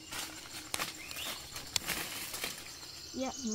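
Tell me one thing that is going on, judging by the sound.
Leaves and branches rustle as a boy pushes through bushes.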